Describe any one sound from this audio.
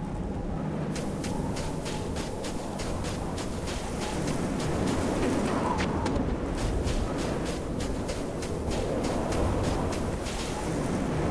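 Footsteps thud quickly and evenly on hard ground.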